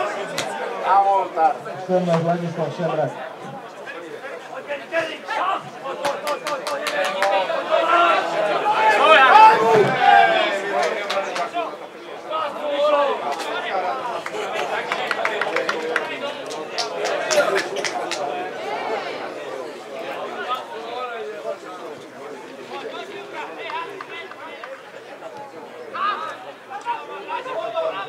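Spectators nearby talk and call out outdoors.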